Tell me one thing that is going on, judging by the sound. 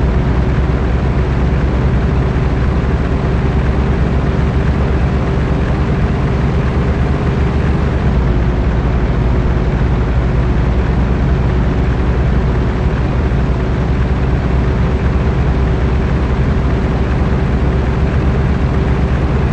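A truck's diesel engine rumbles steadily at cruising speed.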